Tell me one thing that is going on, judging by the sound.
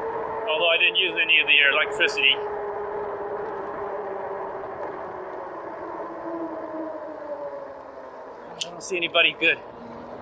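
An electric motor whines steadily, its pitch slowly dropping as the ride slows.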